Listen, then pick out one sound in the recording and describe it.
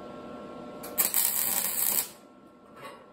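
An arc welder crackles and sizzles.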